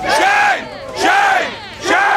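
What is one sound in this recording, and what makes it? A man shouts up close.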